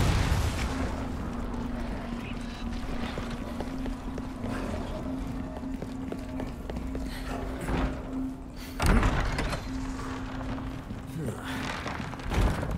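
Footsteps thud on stone.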